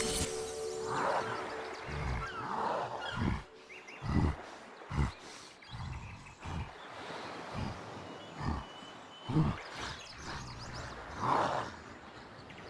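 Cartoon creatures chirp and coo playfully.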